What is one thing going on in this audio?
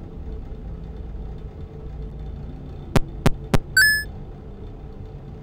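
A desk fan hums steadily.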